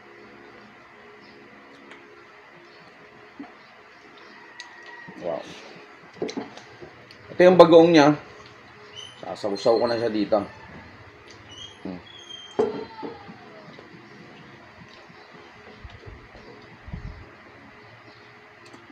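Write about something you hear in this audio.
Two men chew and smack their lips while eating.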